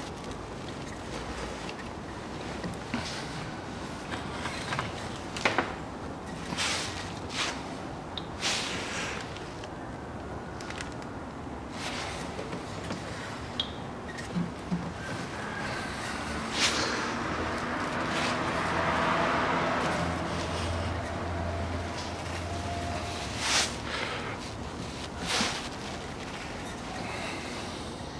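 Plastic parts click, knock and scrape as they are handled up close.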